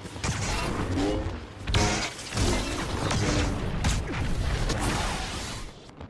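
Blaster shots fire in rapid bursts.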